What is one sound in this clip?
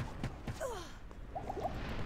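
Lightning crackles in a sharp burst.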